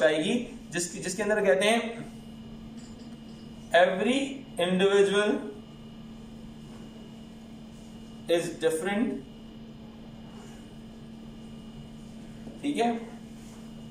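A middle-aged man speaks calmly in short bursts, close by.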